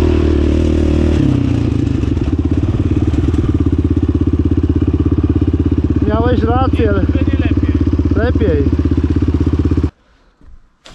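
A quad bike engine roars loudly and steadily up close.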